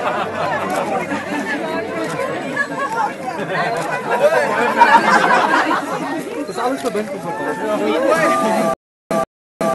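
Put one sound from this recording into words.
A crowd of men and women chatters, cheers and calls out nearby.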